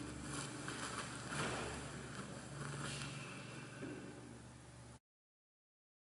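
A woman speaks calmly into a microphone in an echoing room.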